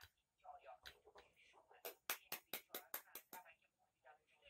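An eggshell crackles as it is peeled by hand.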